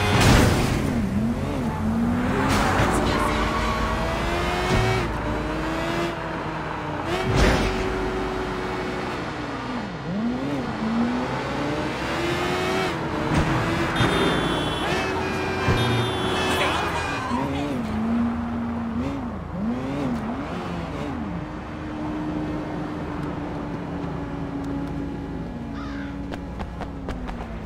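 A motorcycle engine revs up and down as the bike speeds along.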